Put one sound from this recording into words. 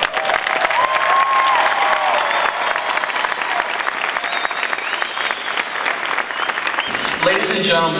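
A large crowd applauds and cheers in a big echoing hall.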